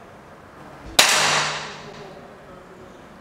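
An air pistol fires a single sharp shot with a short ringing echo.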